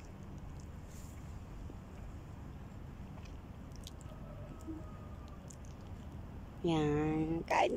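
A woman chews food.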